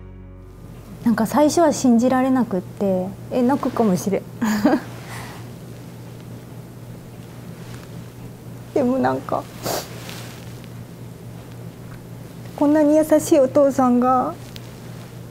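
A young woman speaks hesitantly, close by.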